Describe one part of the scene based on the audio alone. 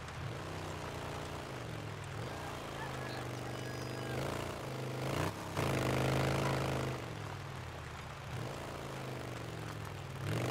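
A motorcycle engine hums steadily and revs up and down as it rides along.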